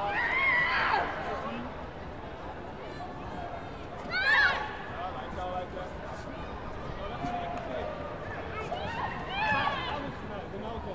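Young athletes shout sharply as they kick.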